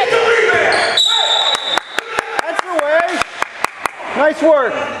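A basketball bounces repeatedly on a hardwood floor.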